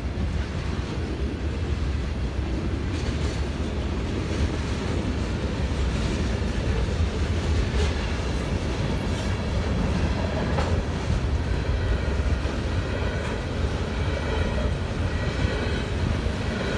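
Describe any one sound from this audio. A freight train rumbles and clatters steadily as it rolls past at a distance.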